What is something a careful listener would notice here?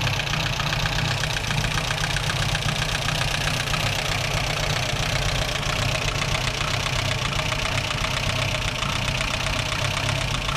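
A car engine idles with a steady, rapid low chugging.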